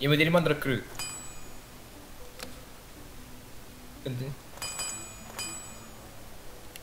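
Short bright interface chimes ring a few times.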